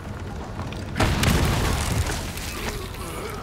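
A gun fires a loud shot.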